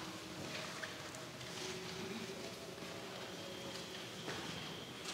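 A man chants slowly in an echoing stone hall.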